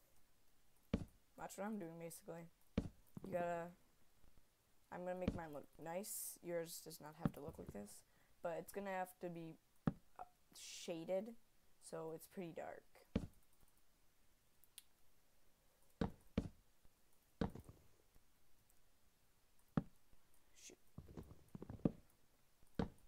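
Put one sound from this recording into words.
Wooden blocks thud softly as they are placed, one after another.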